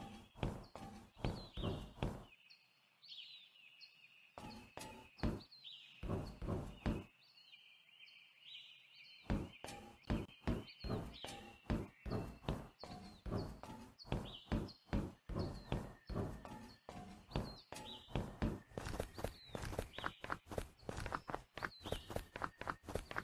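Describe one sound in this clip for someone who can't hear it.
Footsteps thud on hard ground at a quick, steady pace.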